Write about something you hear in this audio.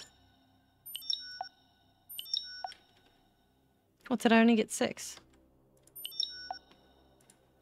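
Short electronic menu blips chime now and then.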